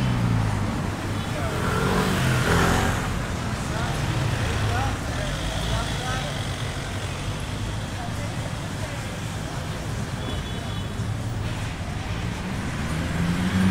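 Car engines hum and idle steadily nearby in street traffic.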